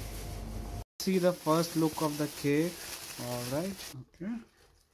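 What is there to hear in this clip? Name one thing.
Plastic wrapping rustles and crinkles as it is pulled off a box.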